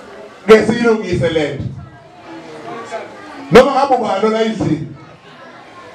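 A man speaks loudly and with emphasis into a microphone over a loudspeaker, in a room that echoes.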